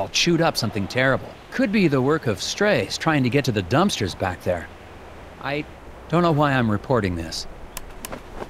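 A man talks on a phone, calmly and with some hesitation.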